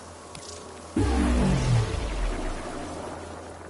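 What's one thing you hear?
A deep, falling electronic chime rings out.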